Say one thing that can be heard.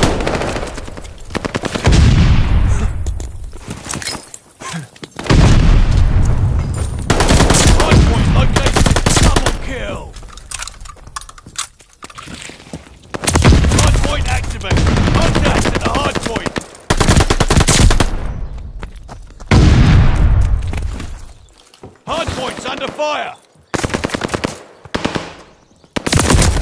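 A rifle fires in rapid bursts with loud booming shots.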